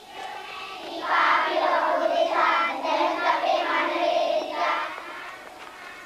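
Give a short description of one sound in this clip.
A group of young girls sings together in an echoing hall.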